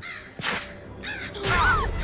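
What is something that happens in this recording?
A gunshot bangs loudly and echoes.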